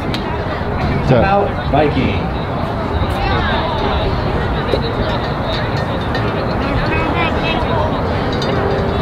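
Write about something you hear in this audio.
Young girls shout and cheer from a distance.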